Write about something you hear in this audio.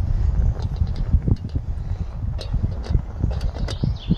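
A metal kettle clinks as it is set down on a stove.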